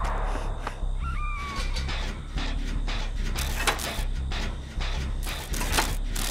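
Metal parts click and clatter under working hands.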